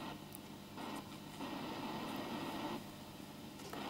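A small electrical relay clicks.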